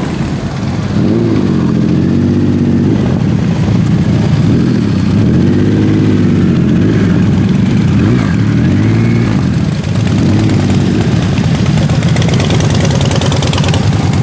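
Motorcycle engines rumble loudly as they ride past, revving up and down.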